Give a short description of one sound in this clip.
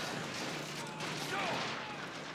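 An explosion bursts with a boom.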